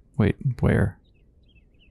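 A porcelain figurine clatters onto a wooden floor.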